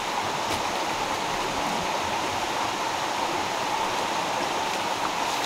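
A stream rushes steadily nearby.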